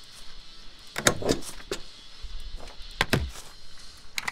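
A rubber stamp thumps down on paper twice.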